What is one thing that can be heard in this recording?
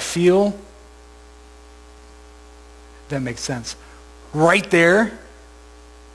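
A man speaks in short, lively bursts through a microphone.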